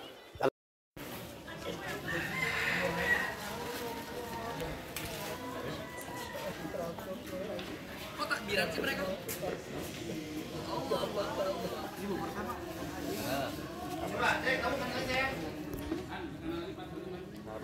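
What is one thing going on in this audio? Men and women chat casually nearby, outdoors.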